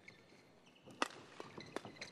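A racket strikes a shuttlecock with a sharp crack.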